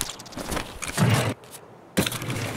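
A metal drawer slides open.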